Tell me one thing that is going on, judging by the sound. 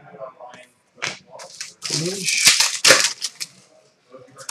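Trading cards rustle and slide as they are handled.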